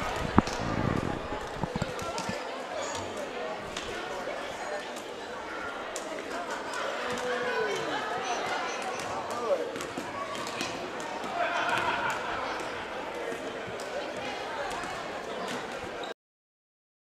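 A crowd of young people chatter and call out in the background.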